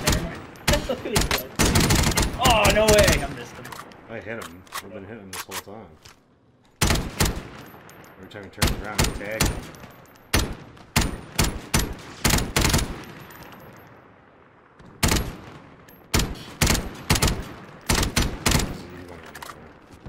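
Rapid gunfire cracks in short bursts.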